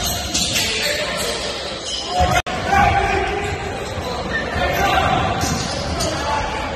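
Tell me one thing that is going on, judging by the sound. A crowd chatters in a large echoing gym.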